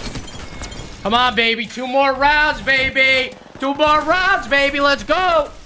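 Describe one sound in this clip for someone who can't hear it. A young man shouts excitedly into a microphone, close by.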